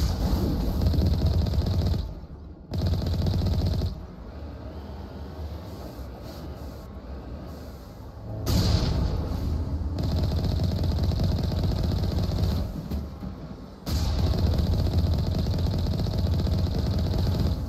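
A cannon fires repeatedly with booming shots.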